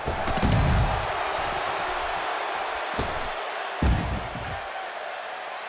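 Heavy thuds sound as bodies slam onto a wrestling ring mat.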